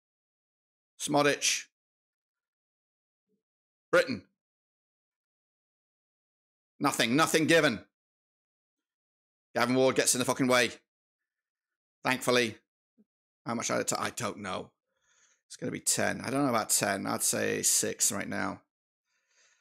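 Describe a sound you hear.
A man talks into a close microphone in short bursts with pauses between them.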